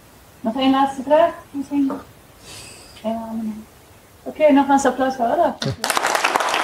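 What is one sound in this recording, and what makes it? A woman speaks into a microphone in a large hall.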